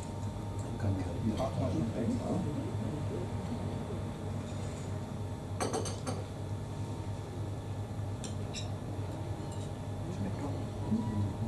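A young man and an older man talk quietly outdoors.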